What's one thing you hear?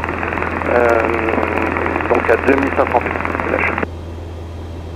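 A man speaks briskly over a crackly radio.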